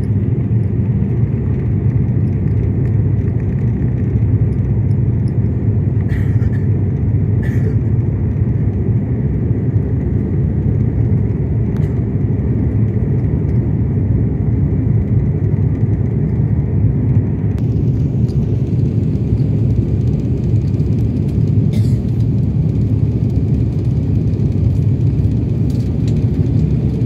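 Jet engines roar steadily inside an aircraft cabin in flight.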